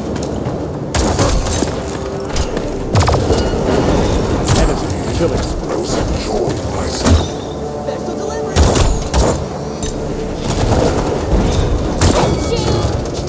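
Gunfire and blasts from a video game ring out in sharp bursts.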